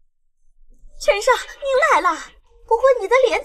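A young woman speaks brightly nearby.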